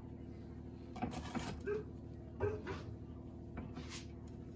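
A wooden peel scrapes across a metal baking tray.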